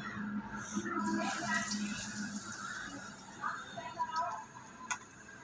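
Batter sizzles and crackles as it fries in hot oil.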